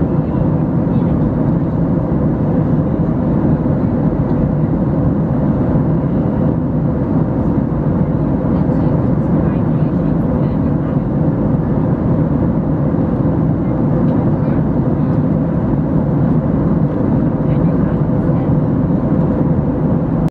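A jet airliner's cabin roars with a steady, deep engine drone.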